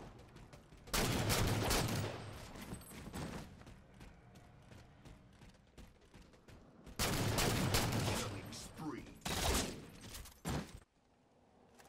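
Rifle shots fire in loud, rapid bursts.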